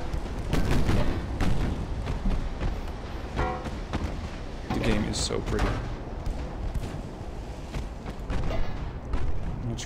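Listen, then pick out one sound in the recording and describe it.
Heavy naval guns fire in booming salvos.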